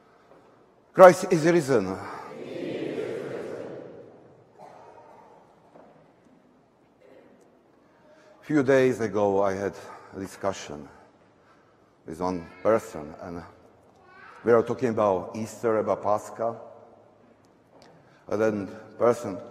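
A man chants in a sung voice, echoing in a large hall.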